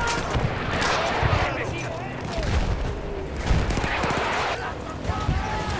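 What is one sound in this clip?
Heavy explosions boom repeatedly nearby.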